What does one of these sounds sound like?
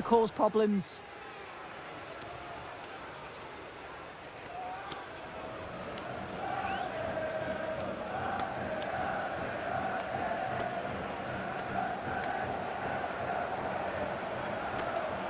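A large stadium crowd chants and cheers steadily.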